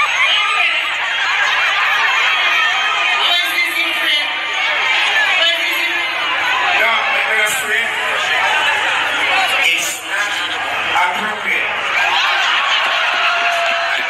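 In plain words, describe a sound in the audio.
A large crowd cheers and screams loudly, heard through a phone microphone.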